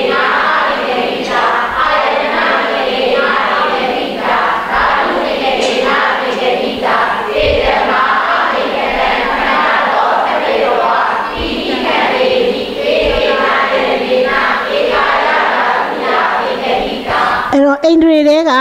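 A woman speaks steadily into a microphone, as if reading aloud.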